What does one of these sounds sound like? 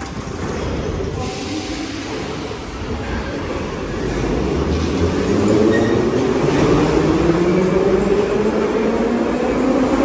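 A metro train pulls away with a rising electric whine and rumble, echoing along the platform.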